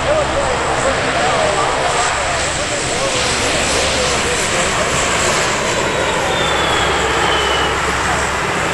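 A jet aircraft roars loudly overhead with a steady, rushing engine noise.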